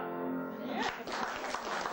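A piano plays a final ringing chord.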